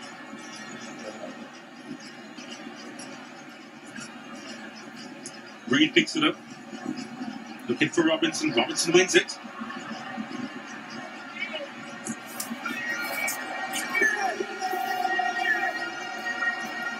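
A large stadium crowd murmurs and cheers throughout.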